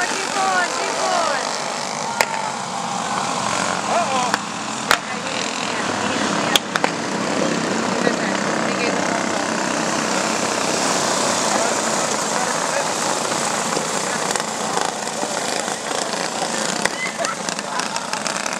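Small racing kart engines buzz and whine as they pass nearby.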